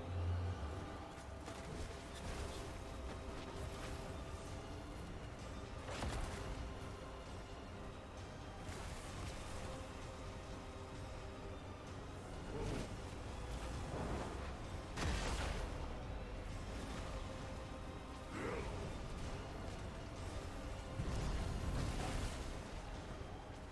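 Game spell effects blast and crackle in a busy battle.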